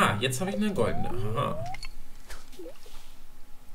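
A fishing line whips out over the water with a short swish.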